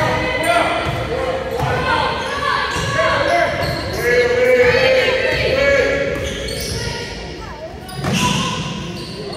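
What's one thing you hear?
Children and adults chatter and call out in a large echoing hall.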